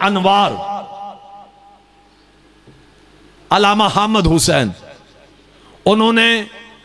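A man chants loudly and mournfully into a microphone, in a large echoing space.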